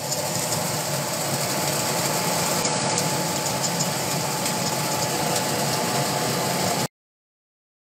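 Feed pellets pour and patter into a bucket.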